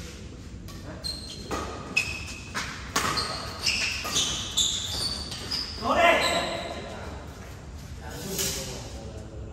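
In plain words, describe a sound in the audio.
Badminton rackets strike a shuttlecock back and forth in a large echoing hall.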